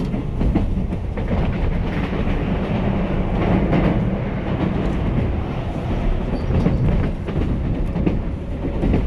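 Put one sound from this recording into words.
Another train rushes past close by with a loud roar.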